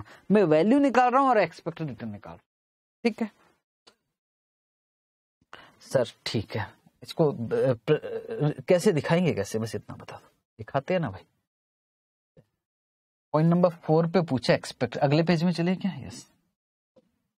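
A man lectures calmly, close to a microphone.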